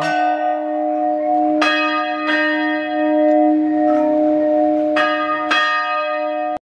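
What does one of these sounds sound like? Church bells ring out in loud, repeated strikes that hum and linger.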